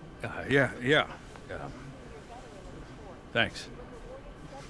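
A young man speaks quietly and hesitantly.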